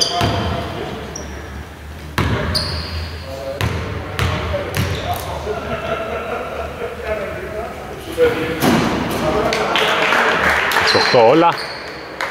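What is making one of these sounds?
Young men call out to each other on the court.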